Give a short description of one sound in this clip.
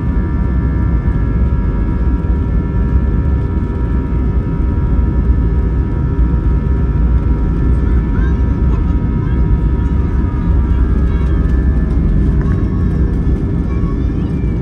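Wheels rumble and thump over a runway.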